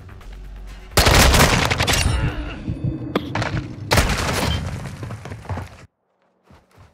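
Gunfire rattles in rapid, loud bursts.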